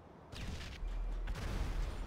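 A car burns with crackling flames.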